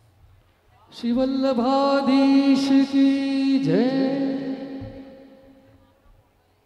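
A man sings long held notes through a microphone.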